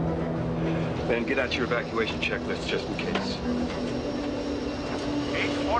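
Several men talk tensely over one another.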